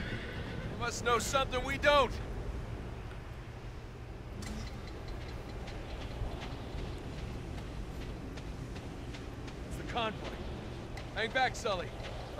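A young man speaks urgently, close by.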